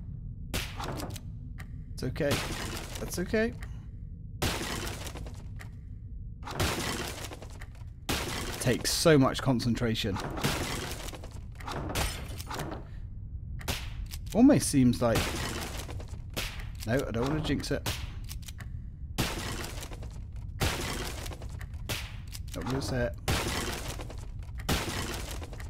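A pellet gun fires in quick, sharp shots.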